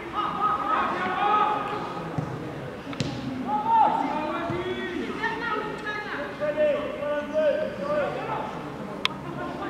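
Football players shout and call to each other across an open pitch.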